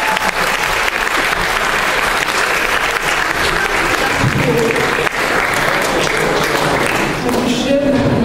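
An audience applauds in a large echoing hall.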